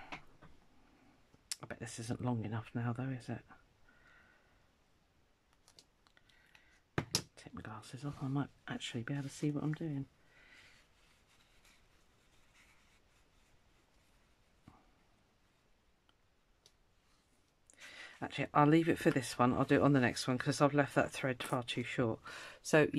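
Paper rustles and crinkles as hands handle it.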